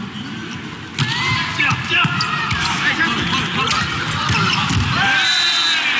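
A crowd cheers loudly during a rally.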